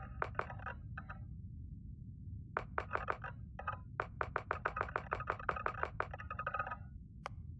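Interface clicks tick rapidly as a slider moves step by step.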